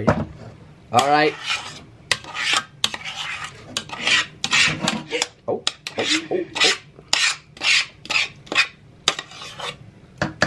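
A spoon scrapes and knocks against a metal pot.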